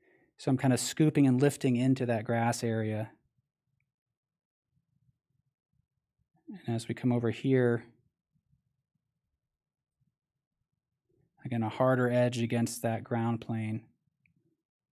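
A man speaks calmly and close into a microphone, in short phrases with pauses.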